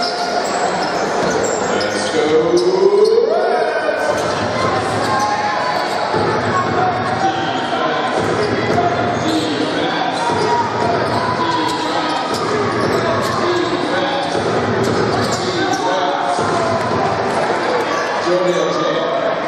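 Basketball shoes squeak on a wooden floor.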